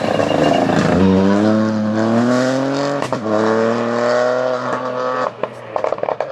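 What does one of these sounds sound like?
A rally car engine revs climb and drop as gears shift.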